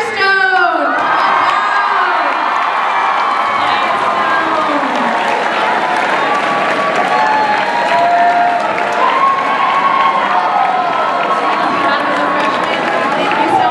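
A large crowd of young people cheers and chatters loudly in an echoing hall.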